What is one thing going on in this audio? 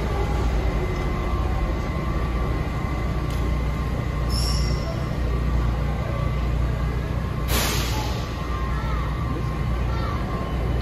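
A subway train idles with a steady low rumble in an echoing station.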